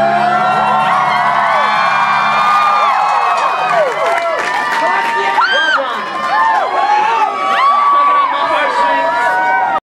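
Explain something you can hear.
A large crowd screams and cheers loudly.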